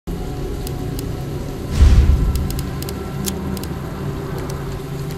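Short soft clicks tick now and then.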